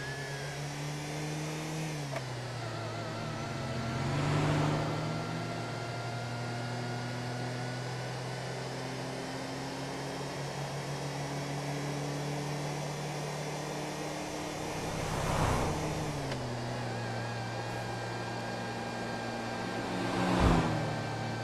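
A car engine hums steadily as it drives along a road.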